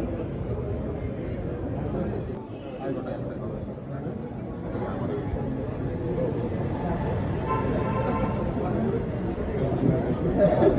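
A crowd of men murmurs and chatters nearby.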